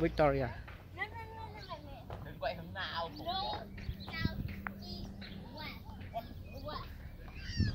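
Women talk at a distance outdoors.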